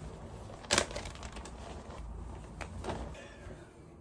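A padded fabric bag rustles as it is handled.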